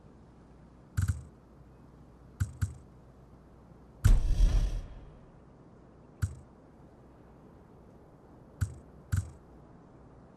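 Short metallic clicks sound now and then.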